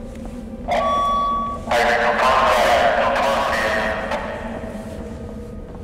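Boots thud on wooden stairs as someone climbs.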